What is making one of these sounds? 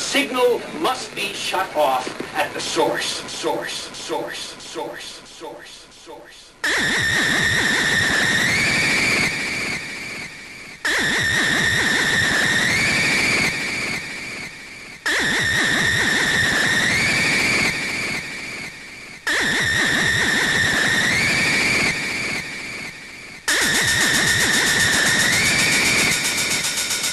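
Loud electronic dance music plays through loudspeakers in a large hall.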